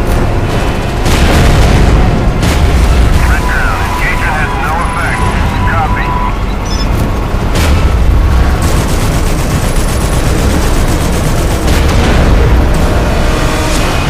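An explosion booms loudly nearby.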